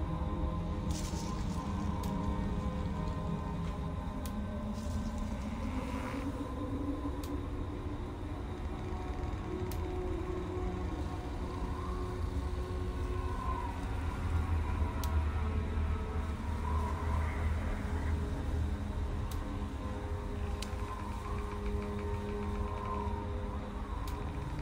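Short interface clicks sound each time a menu selection moves.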